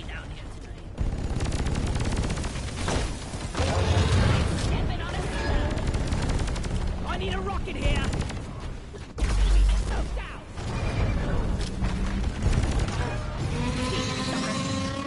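Energy guns fire in rapid bursts.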